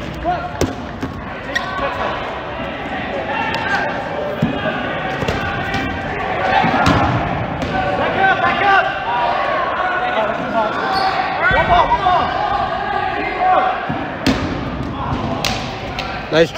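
Rubber balls thud and smack on the floor and against players.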